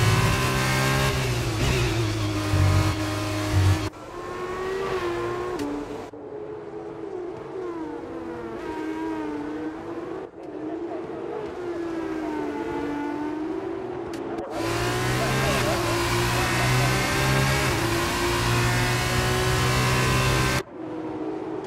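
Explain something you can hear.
A racing car engine screams loudly up close, shifting through gears.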